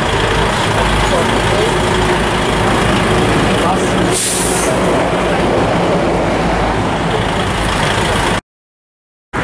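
A heavy truck engine rumbles as the lorry pulls out slowly.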